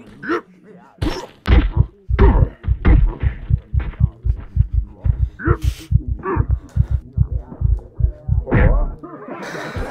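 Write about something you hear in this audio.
Heavy punches land with fast, dull thuds.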